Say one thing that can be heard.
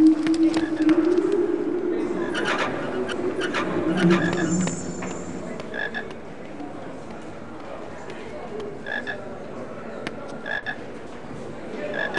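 Footsteps tap on a stone floor and stairs.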